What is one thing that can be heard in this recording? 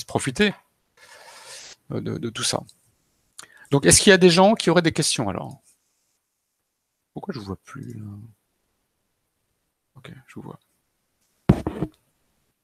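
A man talks calmly over an online call, in short bursts with pauses.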